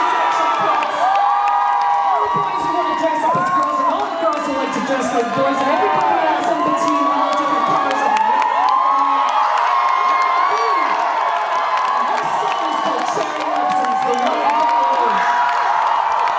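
A young woman sings into a microphone through loud speakers in a large hall.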